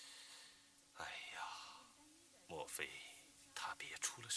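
An elderly man speaks calmly in a low voice.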